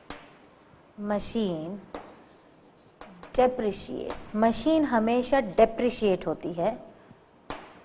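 A woman speaks calmly, as if teaching, close to a microphone.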